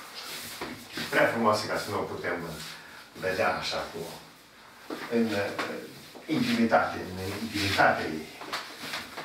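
An elderly man speaks calmly and clearly nearby.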